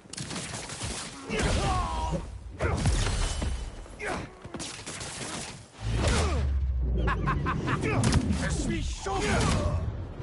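Heavy punches and kicks thud in quick succession.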